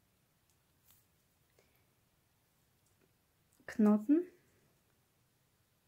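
Hands softly rustle yarn against a crocheted toy.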